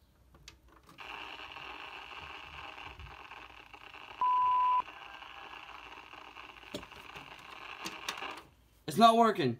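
A television hisses loudly with static.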